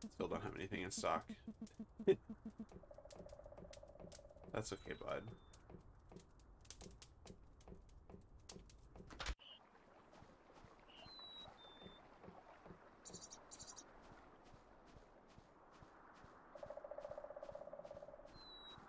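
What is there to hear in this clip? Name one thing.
Quick, soft footsteps tap steadily along.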